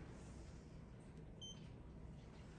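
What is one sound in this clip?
A lift call button clicks when pressed.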